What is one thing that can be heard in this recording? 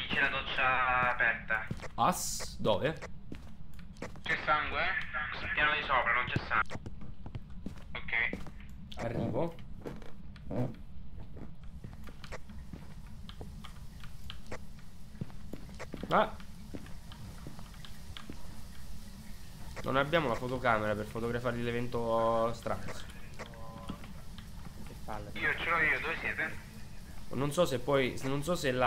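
A second young man talks over an online call.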